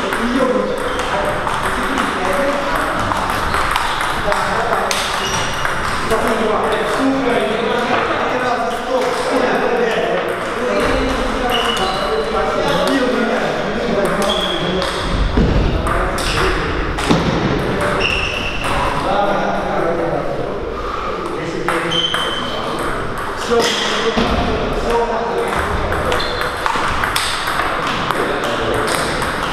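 Men talk casually in an echoing hall.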